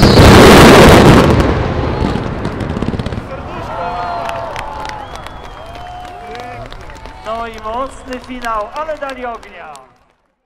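Fireworks crackle and pop in quick bursts.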